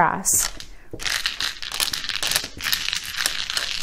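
Plastic tiles clack and rattle as they are pushed across a table.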